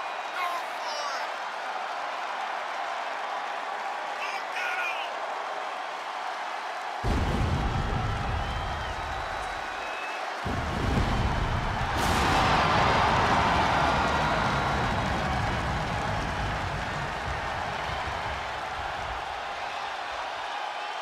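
A large crowd cheers and roars in a huge echoing arena.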